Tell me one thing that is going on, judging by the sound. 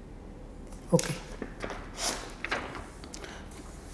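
Paper rustles as a sheet is moved.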